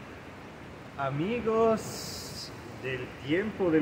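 A middle-aged man speaks warmly and calmly, close by.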